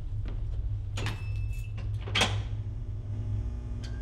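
A door creaks and swings open.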